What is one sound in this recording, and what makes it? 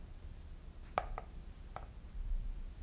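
A ceramic bowl clicks down onto a scale.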